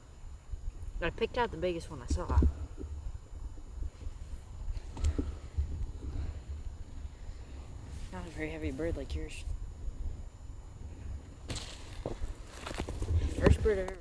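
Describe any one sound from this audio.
A young man talks calmly close by.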